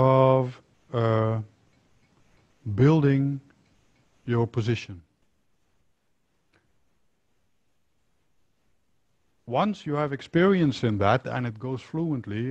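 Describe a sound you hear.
A middle-aged man speaks calmly and clearly into a close microphone, with pauses.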